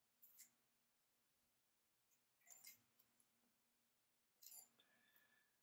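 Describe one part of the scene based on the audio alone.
Thin wire ticks and rustles softly as hands bend it.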